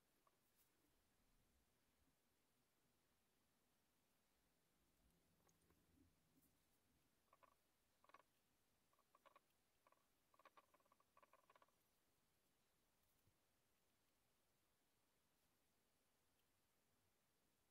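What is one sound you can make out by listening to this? A paintbrush brushes softly on paper.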